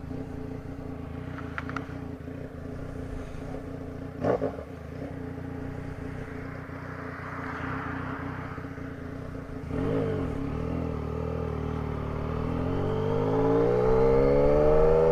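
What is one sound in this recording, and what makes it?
A three-cylinder sport-touring motorcycle cruises at highway speed, its revs rising toward the end.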